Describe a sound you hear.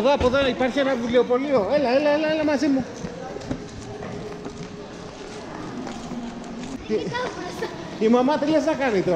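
A young girl shouts and sings excitedly close by.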